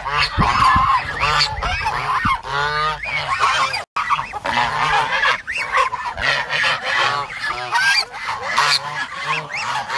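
Ducks quack loudly and repeatedly close by.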